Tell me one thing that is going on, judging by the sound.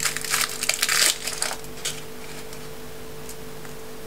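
Foil wrapping crinkles and rustles as it is peeled.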